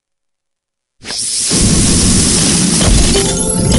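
Game candies pop and burst with bright chimes.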